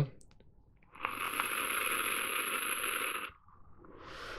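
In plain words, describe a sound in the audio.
A man draws in a long hissing breath through a vape device.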